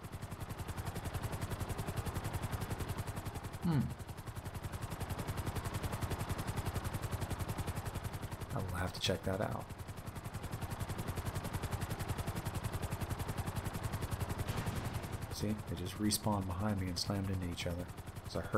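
Helicopter rotor blades chop rapidly and steadily.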